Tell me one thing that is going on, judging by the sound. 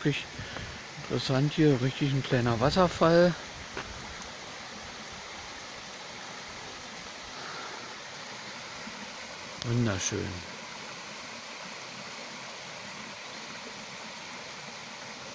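A stream trickles and splashes over rocks outdoors.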